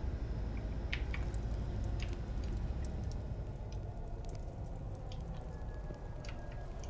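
A torch flame crackles and hisses close by.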